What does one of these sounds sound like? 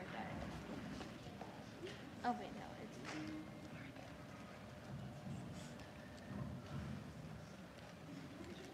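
A young woman speaks quietly into a microphone in a large hall.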